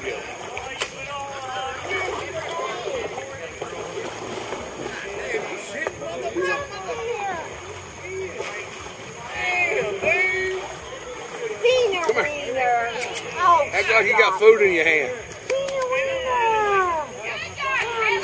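Several adults talk and call out excitedly outdoors.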